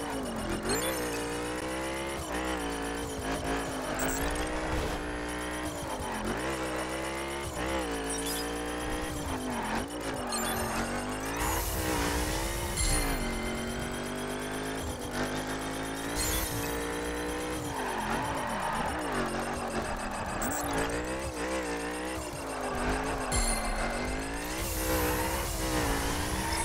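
A racing car engine roars loudly, revving up and dropping with each gear change.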